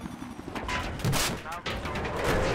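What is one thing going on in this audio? A rocket launcher fires with a sharp blast.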